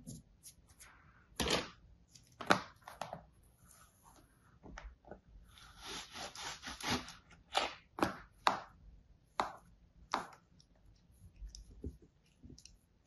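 Sand crumbles and pats as hands press it into a plastic mould.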